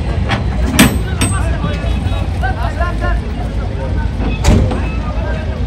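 Cattle hooves knock on a metal truck bed.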